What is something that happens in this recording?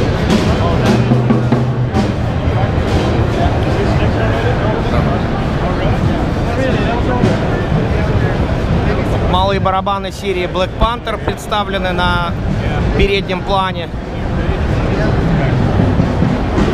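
A crowd chatters loudly in a busy hall.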